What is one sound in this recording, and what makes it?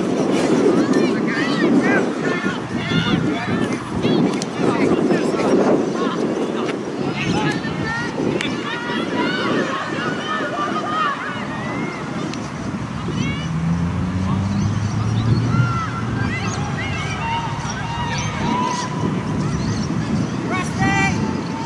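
Young women call out to each other across an open field, far off.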